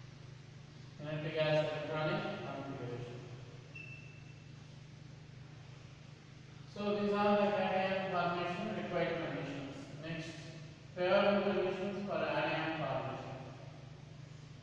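A man speaks clearly and calmly.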